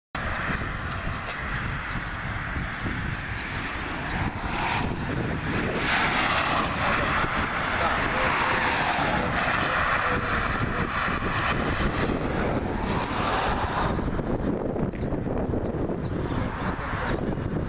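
Wind blusters loudly outdoors.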